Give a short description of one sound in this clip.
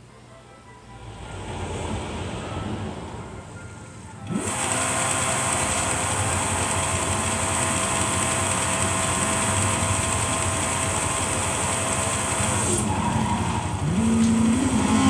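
A racing car's engine roars and revs through a television speaker.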